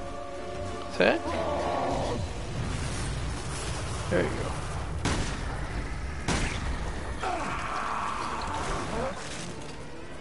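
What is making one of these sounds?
A monster shrieks and growls.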